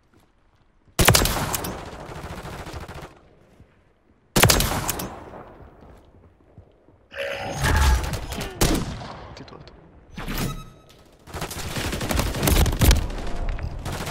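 Rifle shots crack loudly and ring out.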